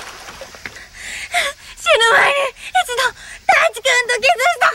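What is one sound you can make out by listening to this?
A young woman cries out desperately from the water, close by.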